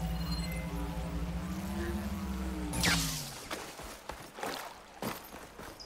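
A stream trickles over stones.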